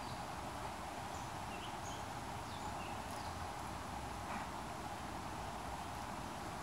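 A stream of water flows steadily nearby.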